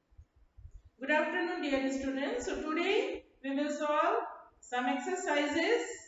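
A middle-aged woman speaks clearly and with animation, close by.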